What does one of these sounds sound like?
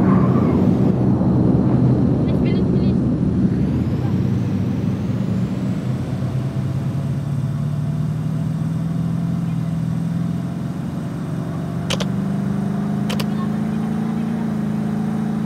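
A vehicle engine hums steadily as a buggy drives over rough ground.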